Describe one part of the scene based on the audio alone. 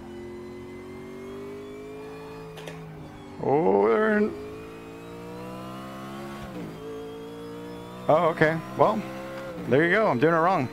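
A race car engine drones steadily and rises in pitch as it revs through the gears.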